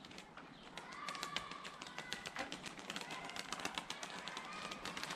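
Birds call in short chirps.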